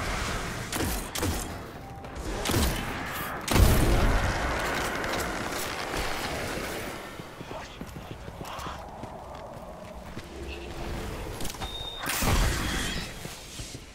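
Gunshots and blasts from a game boom loudly.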